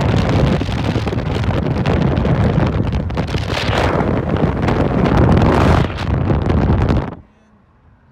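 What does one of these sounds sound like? Loud wind rushes past an open car window.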